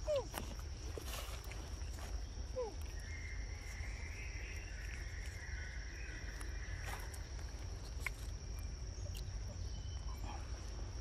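Monkeys squish and tear soft fruit with their hands.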